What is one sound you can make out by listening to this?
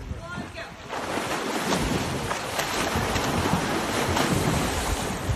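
A swimmer churns the water hard right nearby, splashing loudly.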